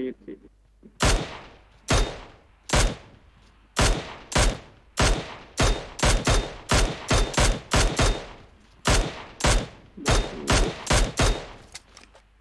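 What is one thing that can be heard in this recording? A rifle fires a rapid series of sharp shots.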